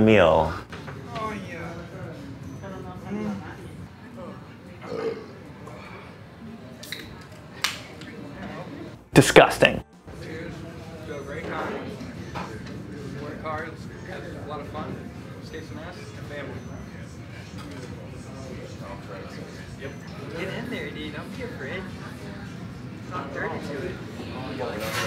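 Several young men chat and laugh around a table.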